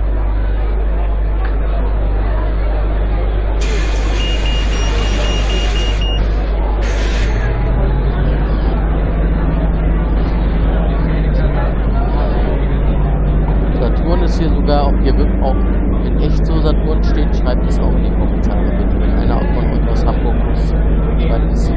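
A bus engine idles, then revs up as the bus pulls away.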